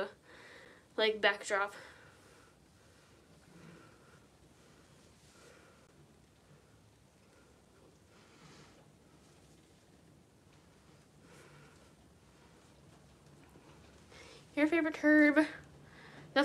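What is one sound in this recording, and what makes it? A young woman makes short, high voiced exclamations close by.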